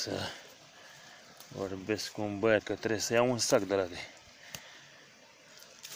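Dry grass rustles as a hand pushes through it.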